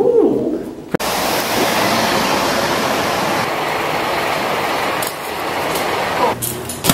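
Wind roars outdoors.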